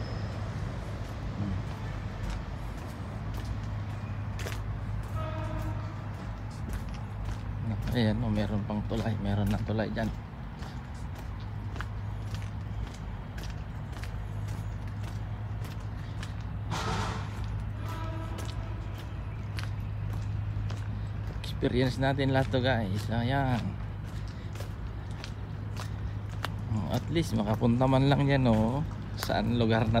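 Footsteps walk steadily on a paved path.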